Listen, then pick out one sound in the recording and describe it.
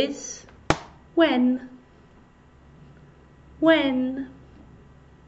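A young woman speaks in short words through a microphone, clearly and slowly.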